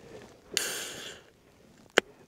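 A can hisses as it is opened.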